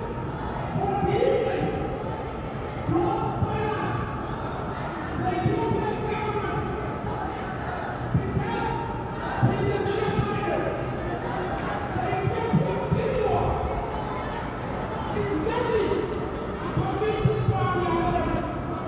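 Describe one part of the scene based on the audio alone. A crowd of men and women chants loudly outdoors.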